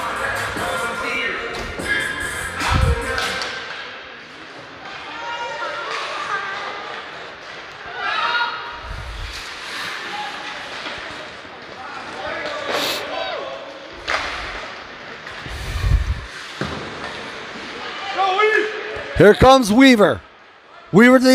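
A crowd of spectators shouts and cheers loudly in an echoing rink.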